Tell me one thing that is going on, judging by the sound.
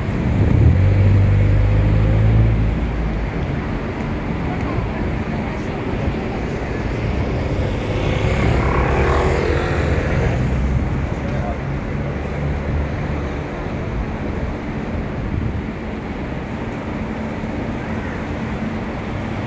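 Steady traffic rumbles along a city street outdoors.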